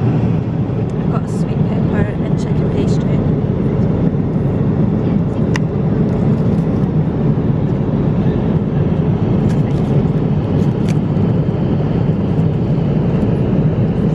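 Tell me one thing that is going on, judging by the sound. A cardboard box rustles and clicks as it is opened.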